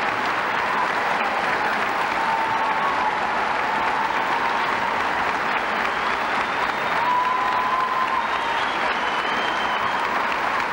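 A large crowd cheers and applauds loudly in a big echoing hall.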